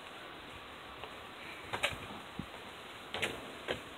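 A young girl steps and stomps on a hollow box.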